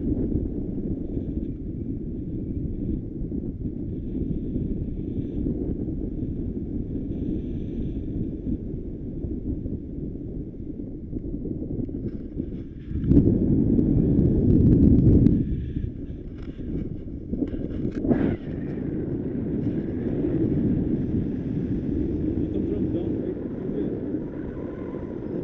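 Wind rushes and buffets loudly against the microphone outdoors.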